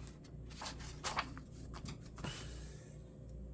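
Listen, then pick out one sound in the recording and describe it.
Paper pages rustle as they are smoothed flat by hand.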